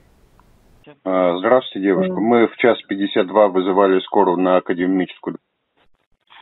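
A man speaks over a phone line.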